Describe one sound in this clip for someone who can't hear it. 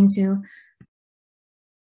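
A woman speaks briefly and calmly through an online call.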